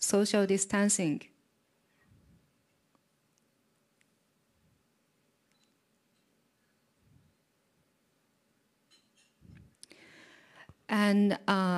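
A young woman speaks calmly into a microphone, in short bursts with pauses.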